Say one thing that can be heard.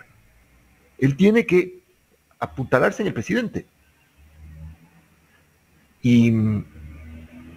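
An older man speaks calmly over a headset microphone in an online call.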